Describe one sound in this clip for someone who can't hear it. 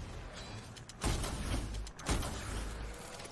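A blast booms loudly.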